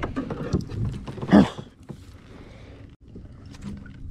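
Water splashes as a fish is hauled into a net.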